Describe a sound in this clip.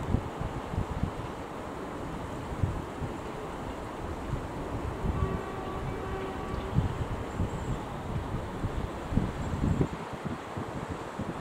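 A train rumbles slowly along the track.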